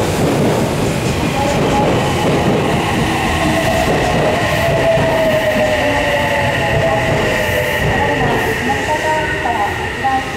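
Train brakes squeal as the train slows.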